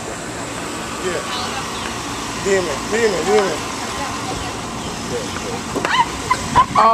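Young women talk and laugh nearby, outdoors.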